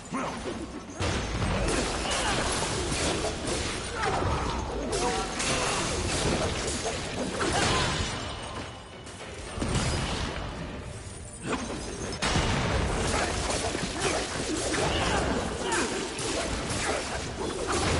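Blades slash and clang in a fast fight.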